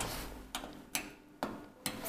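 A button on an elevator panel clicks when pressed.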